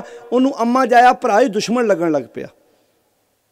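A man sings loudly and passionately into a microphone.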